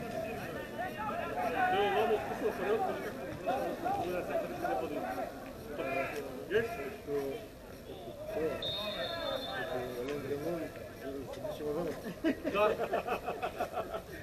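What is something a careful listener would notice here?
Men shout and call to each other across a large open sports ground.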